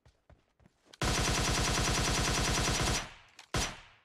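A rifle fires in a rapid automatic burst.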